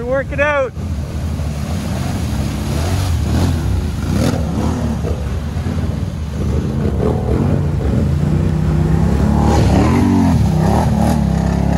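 An all-terrain vehicle engine roars and revs hard.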